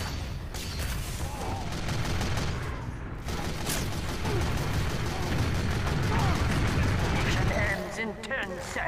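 Flames roar from a flamethrower.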